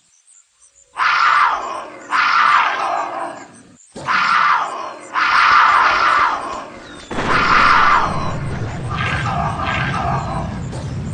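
A wolf snarls and growls in repeated bursts.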